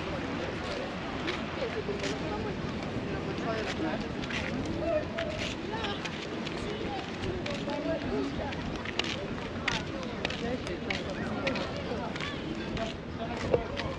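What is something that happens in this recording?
Footsteps scuff on pavement.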